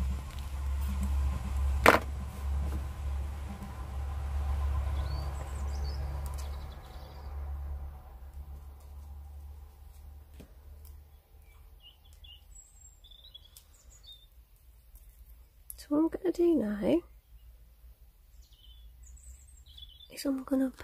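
Thin wire ticks and rustles softly as it is bent between fingers.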